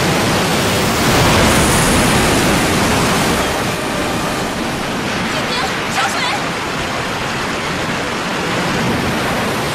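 A rushing torrent of water pours.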